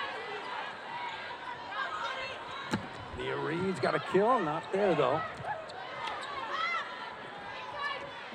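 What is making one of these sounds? A crowd cheers and murmurs in a large echoing arena.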